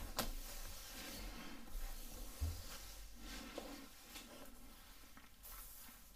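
A comb brushes through hair.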